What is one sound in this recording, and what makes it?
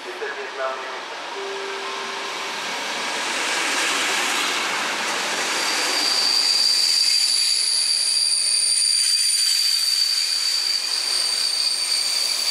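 A train rolls past close by, its wheels clattering and rumbling on the rails.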